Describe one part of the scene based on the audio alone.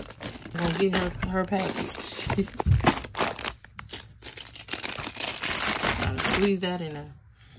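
Plastic snack wrappers crinkle as a hand shifts them about.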